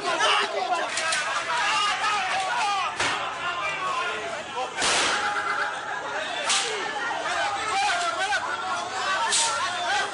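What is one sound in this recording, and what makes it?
A crowd of men and women shout excitedly nearby outdoors.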